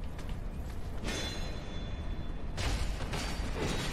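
Metal weapons clash and strike loudly.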